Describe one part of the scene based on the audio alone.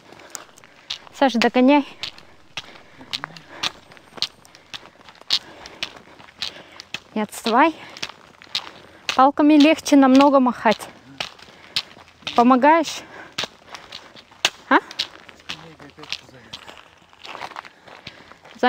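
Trekking poles click on gravel.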